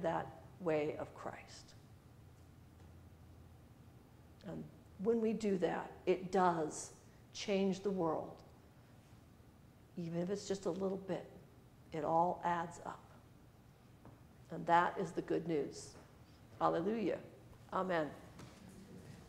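A woman speaks calmly in phrases with pauses.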